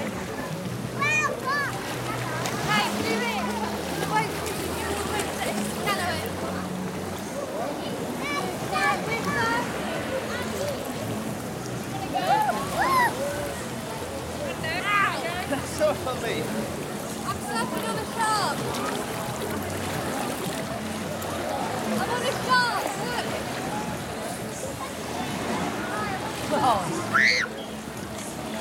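Children squeal with high, excited cries.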